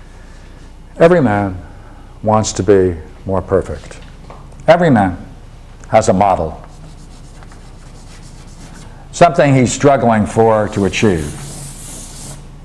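An elderly man speaks calmly, as if lecturing, close by.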